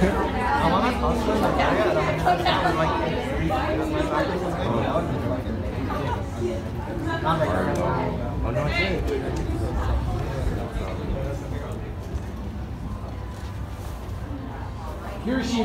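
A crowd of young people murmurs and chatters.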